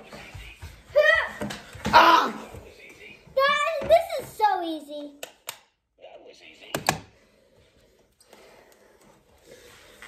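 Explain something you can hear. A young girl talks and laughs close by with animation.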